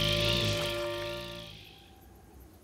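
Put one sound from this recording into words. A small cartoon creature shrieks loudly.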